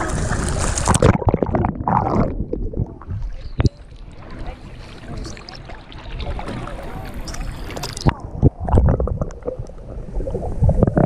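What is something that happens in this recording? Water gurgles and bubbles as the microphone dips under the surface.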